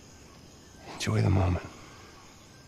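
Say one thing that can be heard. A second man answers in a low, calm voice.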